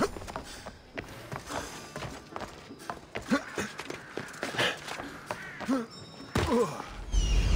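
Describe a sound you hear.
Footsteps clatter quickly across roof tiles.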